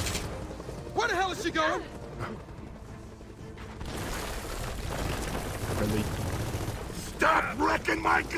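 A man speaks with animation through a microphone, close by.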